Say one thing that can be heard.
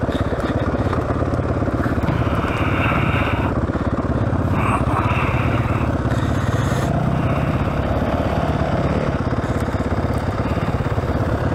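A dirt bike engine idles and revs close by with a rapid popping throb.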